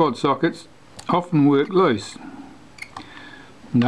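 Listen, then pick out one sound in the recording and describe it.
A small screwdriver clicks and scrapes against metal parts.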